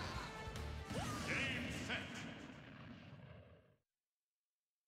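Arcade-style fight effects clash, whoosh and chime rapidly.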